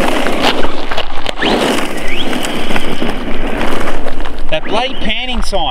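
An electric RC truck's motor whines at full throttle as it races away.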